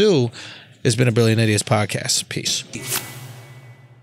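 A young man talks with animation, close into a microphone.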